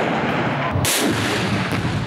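A rocket launcher fires with a loud, sharp blast close by.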